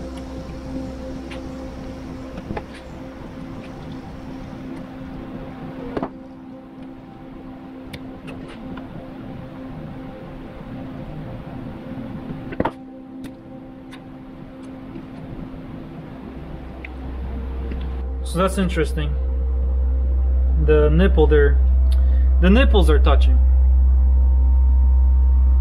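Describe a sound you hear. Small metal parts click and tap under a screwdriver.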